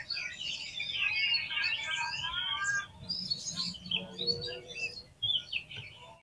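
A songbird sings a rich, varied song of whistles and chirps close by.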